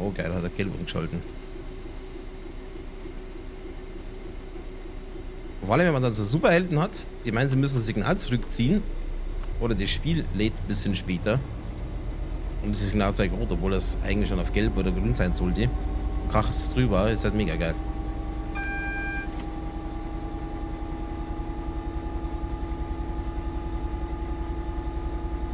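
A train engine hums steadily and slowly rises in pitch.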